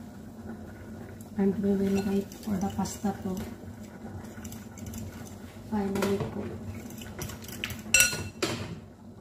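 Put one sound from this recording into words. A metal lid clatters against a pot.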